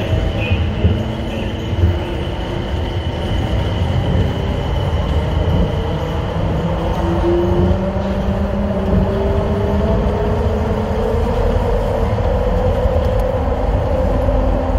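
Train motors whine with a slowly rising pitch.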